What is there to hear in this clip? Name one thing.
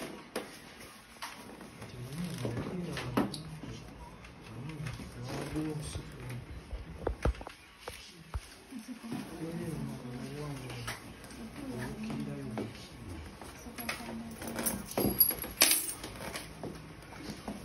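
Plastic parts click and knock as a seat is handled.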